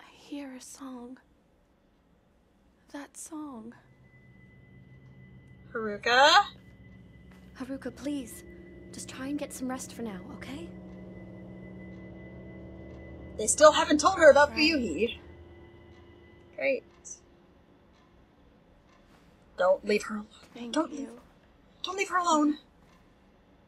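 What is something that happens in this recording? A young woman talks softly close to a microphone.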